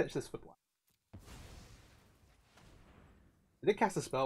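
A magical whoosh sounds as a spell strikes.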